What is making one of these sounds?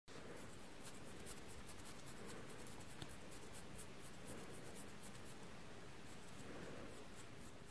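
Hands rub slippery, wet skin with soft squelching sounds.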